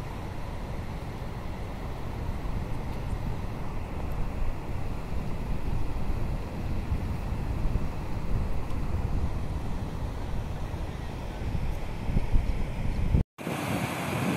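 Wind blusters across open water.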